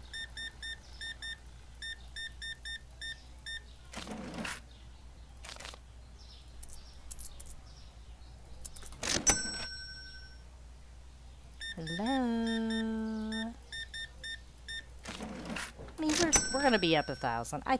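A checkout scanner beeps rapidly and repeatedly.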